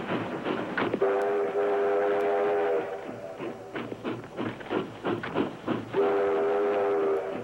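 A train horn blows loudly as a locomotive approaches.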